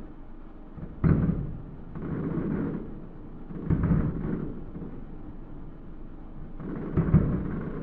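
Distant fireworks boom and crackle, echoing across open water.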